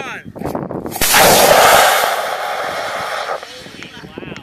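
A rocket motor ignites with a loud, sudden roar that lasts a couple of seconds.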